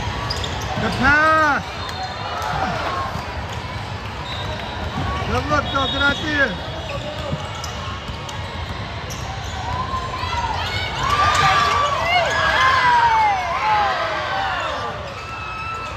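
Basketball shoes squeak sharply on the court.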